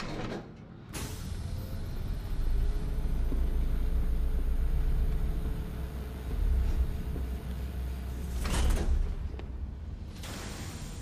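A heavy metal vault door creaks and grinds as it swings open slowly.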